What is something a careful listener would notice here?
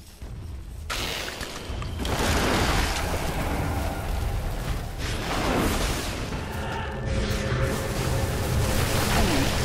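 Magic blasts and combat effects crash and crackle loudly.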